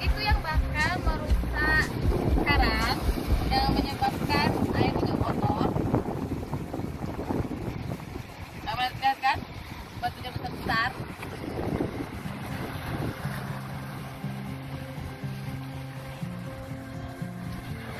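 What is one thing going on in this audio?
Small waves wash and splash over rocks.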